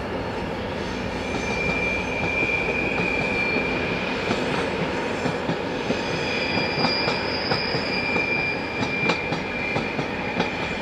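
Train wheels squeal and click on the rails.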